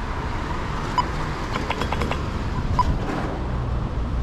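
A pedestrian crossing signal ticks repeatedly.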